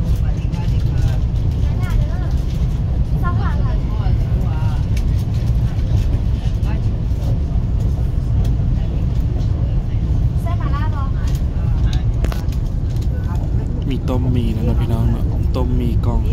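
A train rumbles steadily with a low hum.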